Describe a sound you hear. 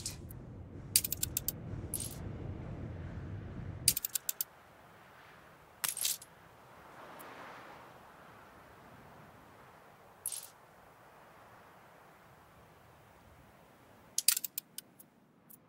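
Short menu clicks sound several times.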